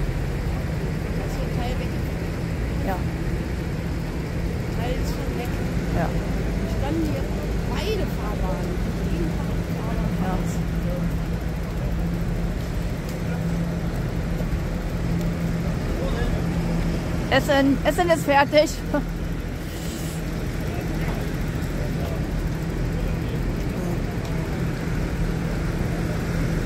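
Tractor engines rumble steadily.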